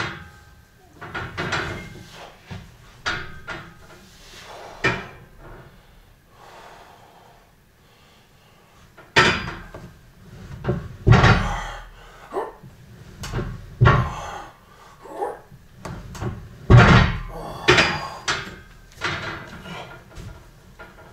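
A man grunts and breathes hard with effort, close by.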